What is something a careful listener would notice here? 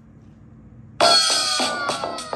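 Upbeat game music plays loudly from a tablet speaker.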